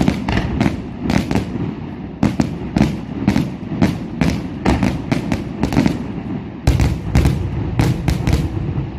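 A low rumble of fireworks booms rolls on steadily.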